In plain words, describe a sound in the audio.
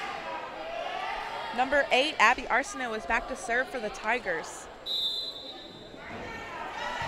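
A crowd murmurs in an echoing gym.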